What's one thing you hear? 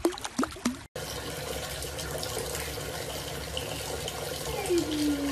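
Water trickles over a small dog.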